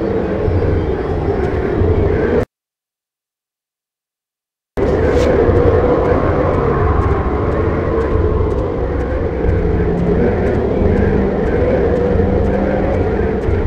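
Footsteps thud steadily on a wooden walkway.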